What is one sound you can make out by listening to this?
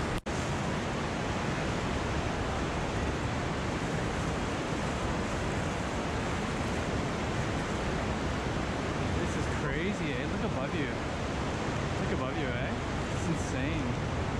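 People wade and splash through water.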